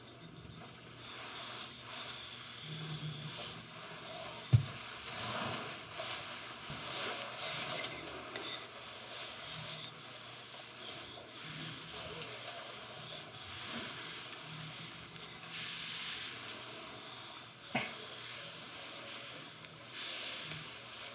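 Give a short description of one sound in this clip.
A wooden rod rubs and rolls softly over skin and a towel.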